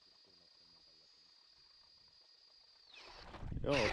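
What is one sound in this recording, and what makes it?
A cordless drill whines steadily as an auger bores through ice.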